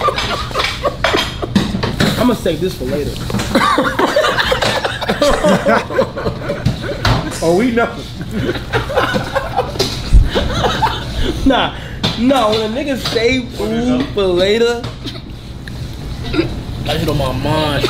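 Young men laugh loudly and excitedly close by.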